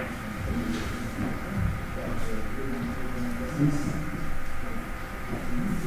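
Billiard balls click against each other and thud off the cushions.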